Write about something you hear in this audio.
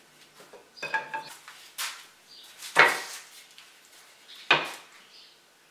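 Wooden pieces knock against a wooden bench.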